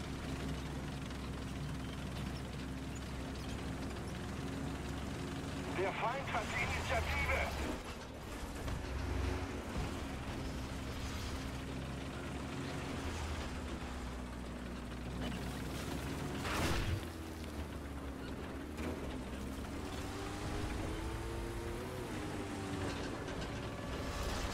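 Tank tracks clatter and squeal over the ground.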